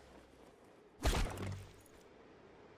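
A body slams hard against a glass wall with a heavy thud.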